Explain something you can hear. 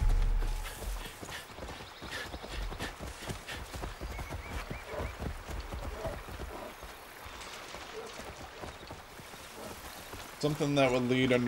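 Footsteps crunch steadily on dirt and gravel.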